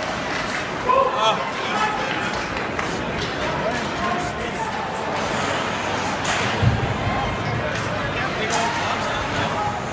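A crowd murmurs and cheers loudly in an echoing arena.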